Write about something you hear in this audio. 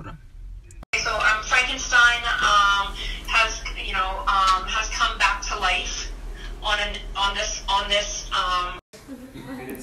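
A young woman sings loudly and playfully close by.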